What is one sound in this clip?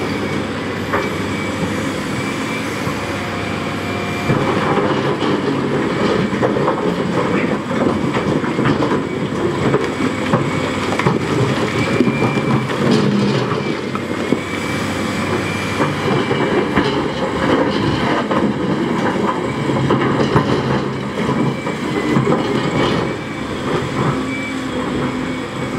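Rocks scrape, clatter and tumble as an excavator bucket digs into them.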